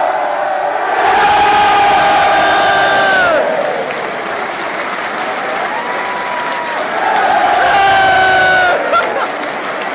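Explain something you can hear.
A stadium crowd cheers and roars loudly.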